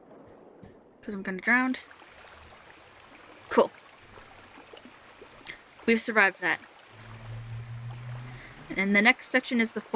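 Water splashes softly as a child swims at the surface.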